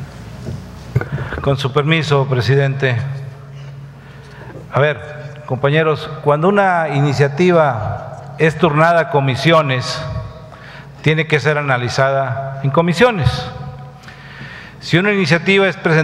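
A middle-aged man speaks forcefully into a microphone in a large echoing hall.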